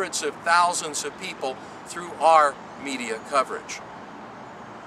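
A middle-aged man speaks with animation close to a microphone, outdoors.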